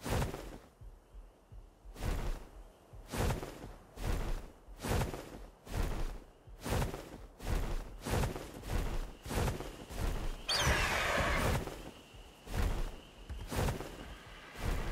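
Large wings beat with heavy, regular whooshing flaps.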